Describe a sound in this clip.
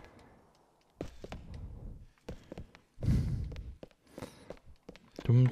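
Footsteps thud on hard stairs and floor.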